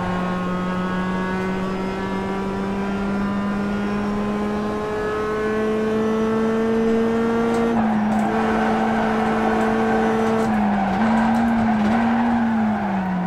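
A racing car engine drones steadily through loudspeakers, rising in pitch and dropping as it shifts gear.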